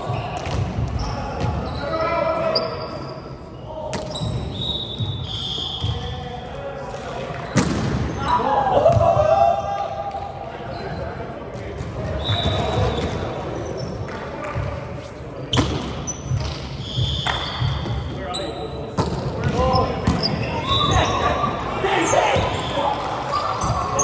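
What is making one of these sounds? Sneakers squeak on a hardwood gym floor.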